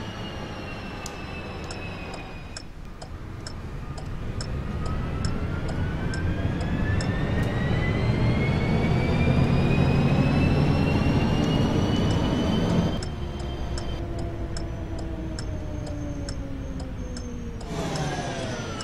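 A bus engine hums, rising in pitch as the bus speeds up, then drops as it slows.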